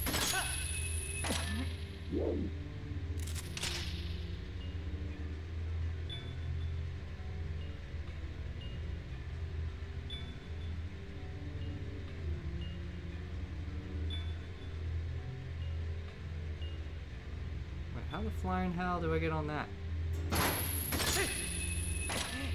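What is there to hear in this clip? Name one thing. A chain shoots out with a sharp metallic clank.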